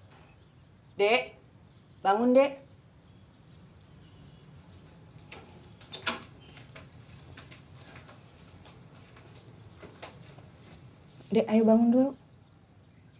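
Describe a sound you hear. A middle-aged woman calls out loudly from a short distance, then speaks closer by.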